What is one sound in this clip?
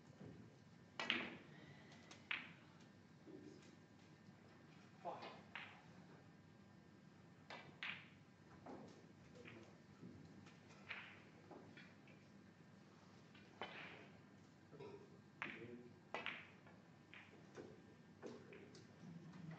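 A snooker cue strikes the cue ball with a sharp tap.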